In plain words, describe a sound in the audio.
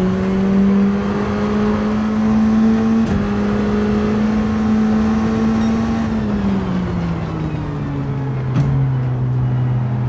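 A racing car engine drones loudly at high revs, then winds down as the car slows.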